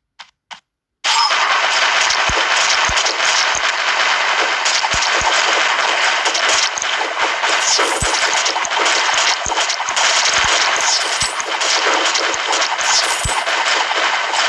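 Game sound effects of magic shots and hits play rapidly and constantly.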